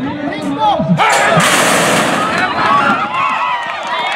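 A crowd cheers and shouts as the race starts.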